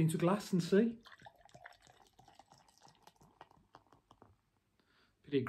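Beer pours and fizzes into a glass.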